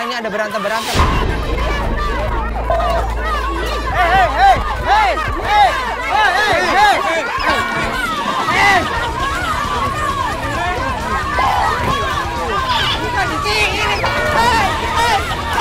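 A group of women shriek and laugh excitedly.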